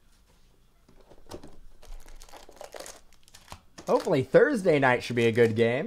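Card packs tap and shuffle on a table.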